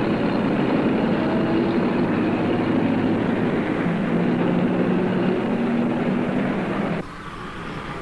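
A car drives along a road.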